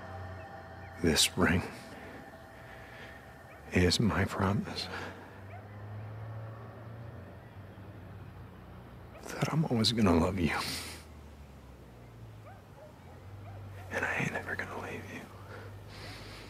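A young man speaks softly and tenderly, close by.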